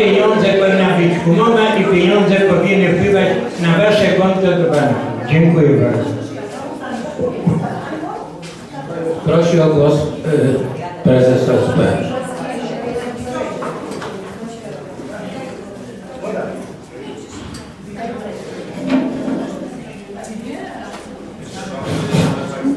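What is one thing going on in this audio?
People murmur and chatter in the background.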